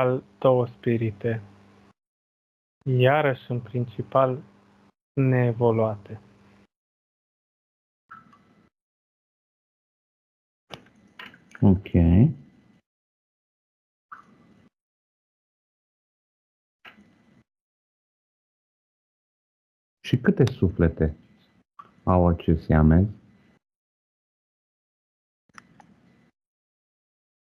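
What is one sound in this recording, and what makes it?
A man speaks quietly in short bursts over an online call.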